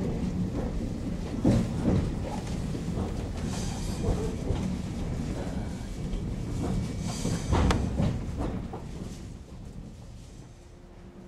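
A train rumbles and rattles along the tracks.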